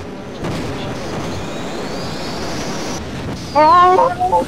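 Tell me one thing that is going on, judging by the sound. An energy weapon fires with a steady crackling hum.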